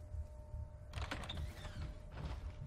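A heavy wooden door swings open.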